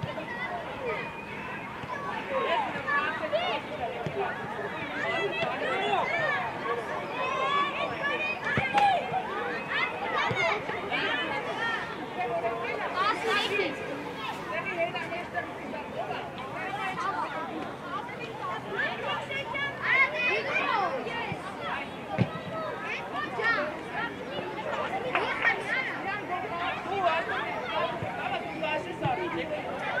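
Children shout and call out excitedly outdoors.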